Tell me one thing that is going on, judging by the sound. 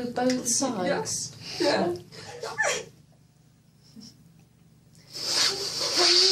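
A young woman cries and speaks in a choked, tearful voice close by.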